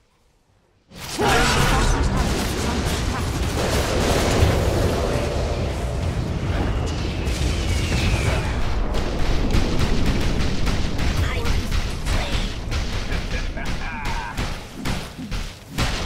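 Game spell effects crackle and boom during a battle.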